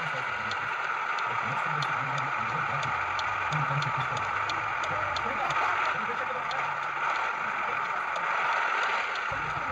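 A heavy truck engine rumbles steadily at low speed.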